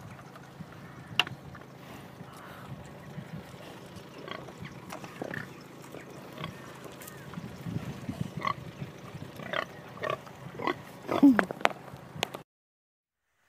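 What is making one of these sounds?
Pigs grunt and snuffle close by.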